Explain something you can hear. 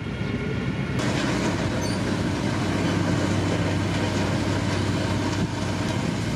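A road grader's diesel engine rumbles steadily.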